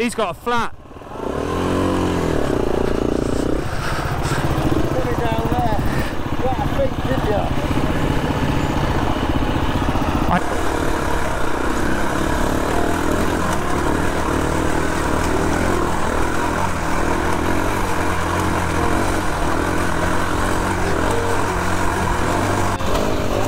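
A motorcycle engine runs close by with a steady rumble.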